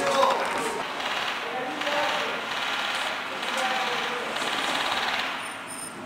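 A smoke grenade hisses steadily outdoors.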